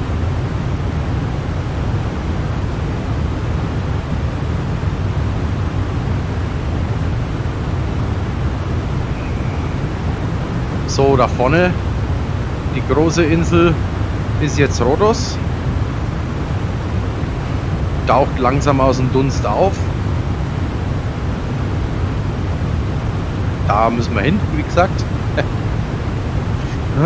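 A jet airliner's engines drone steadily.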